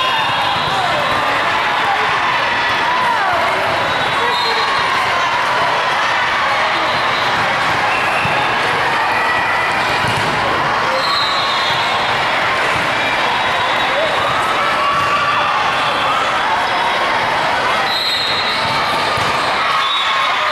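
A crowd of young people chatters throughout a large echoing hall.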